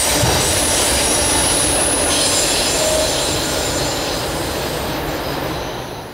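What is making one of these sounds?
A river rushes over rocks.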